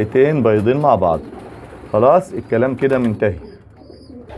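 A pigeon coos softly close by.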